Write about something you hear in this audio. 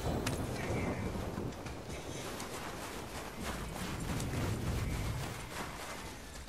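Heavy footsteps crunch on snow.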